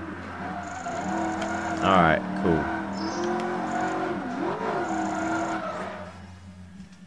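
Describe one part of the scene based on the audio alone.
A racing car engine roars and revs, rising and falling in pitch, then cuts out.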